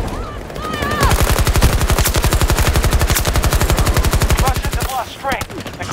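A rifle fires in a rapid burst.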